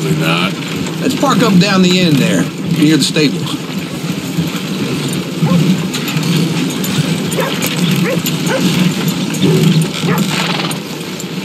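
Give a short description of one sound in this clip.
A wooden wagon rumbles and creaks as it rolls over dirt.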